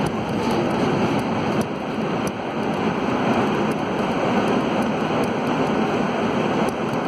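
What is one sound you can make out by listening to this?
A subway train rumbles and rattles loudly through a tunnel.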